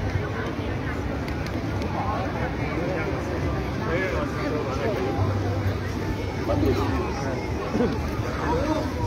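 A crowd of people chatters outdoors, with many voices mixing.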